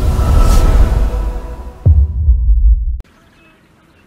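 A deep booming swell rumbles and then cuts off abruptly.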